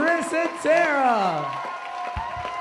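Young women whoop and cheer loudly nearby.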